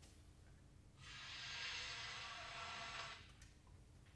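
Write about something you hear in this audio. A clarinet plays a short, breathy note close by.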